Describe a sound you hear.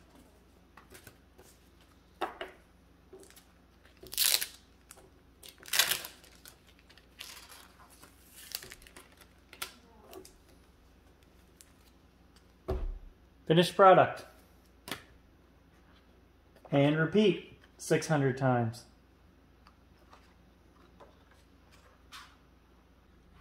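Paper and card rustle and slide as they are handled.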